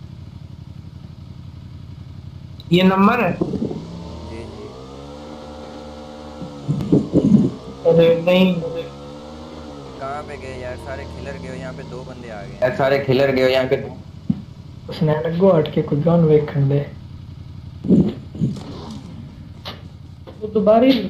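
A motorbike engine hums and revs.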